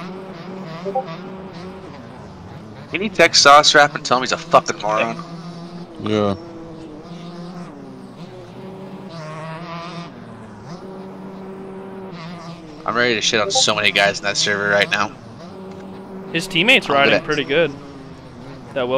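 A motorbike engine drones and revs steadily.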